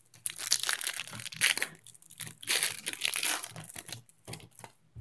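Plastic wrappers crinkle and rustle in a hand close by.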